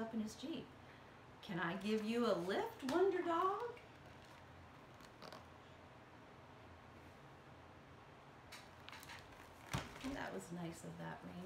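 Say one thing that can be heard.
A woman speaks calmly and expressively close by.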